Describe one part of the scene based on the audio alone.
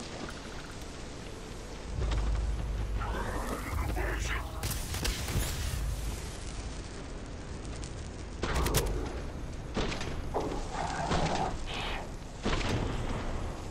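Flames roar and whoosh.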